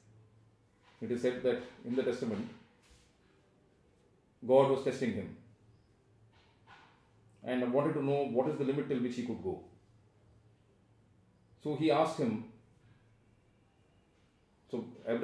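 An older man speaks calmly and with emphasis, close to a microphone.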